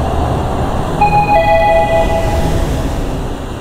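An elevator chime rings.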